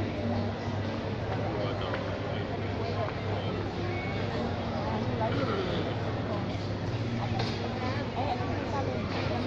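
A young woman speaks into a microphone over a loudspeaker.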